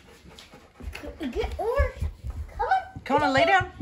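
A young girl talks excitedly up close.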